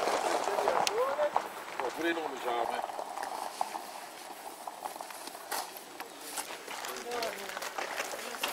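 A man talks nearby in a casual voice.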